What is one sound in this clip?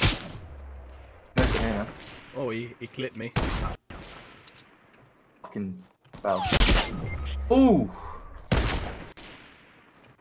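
A sniper rifle fires loud single shots that ring out and echo.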